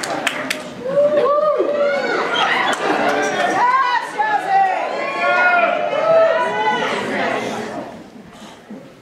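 A small band plays music in a large echoing hall.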